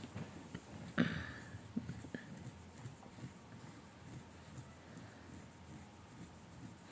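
Cloth rustles as a fabric sheet is lifted and lowered.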